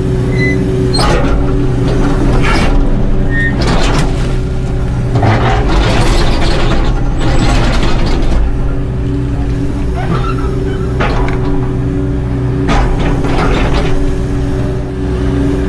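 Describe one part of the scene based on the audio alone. An excavator bucket scrapes and breaks loose rock and earth.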